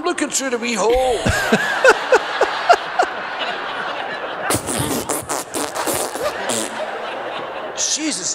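A woman laughs loudly and shrieks into a close microphone.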